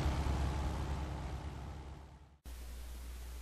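A small propeller plane drones steadily overhead, then cuts off.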